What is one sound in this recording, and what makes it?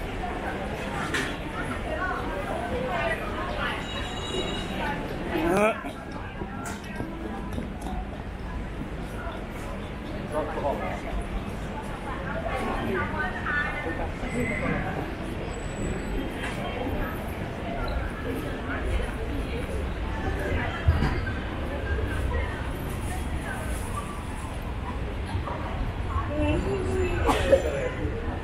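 A busy crowd murmurs and chatters outdoors, with voices near and far.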